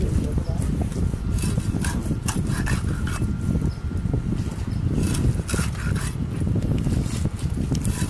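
A fish is sliced against a fixed upright blade, with wet chops on a wooden block.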